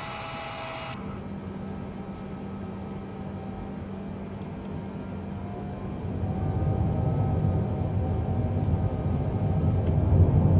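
A jet engine hums low and muffled inside a cockpit.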